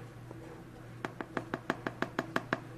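A spoon taps rapidly against a cup's rim.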